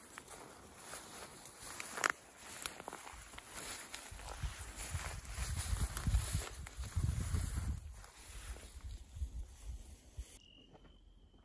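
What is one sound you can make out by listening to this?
Footsteps swish and rustle through tall grass close by.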